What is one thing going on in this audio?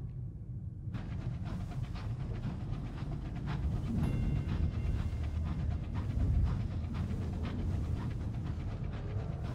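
A heavy engine rumbles steadily as a vehicle drives along.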